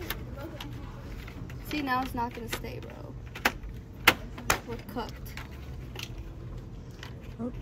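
Plastic packaging crinkles and clicks as a hand handles it on a shelf.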